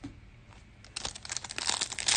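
Plastic wrapping crinkles and tears as a pack is opened.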